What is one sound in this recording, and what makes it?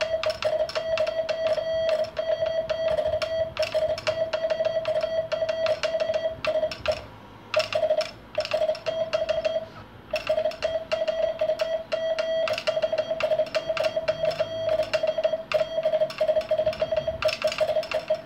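A telegraph key clicks rapidly as a hand taps out code.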